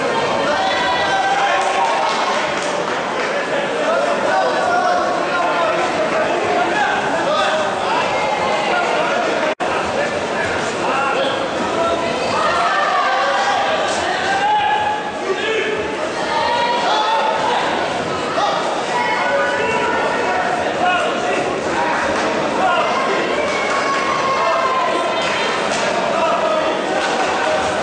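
A crowd of spectators chatters and calls out across a large echoing hall.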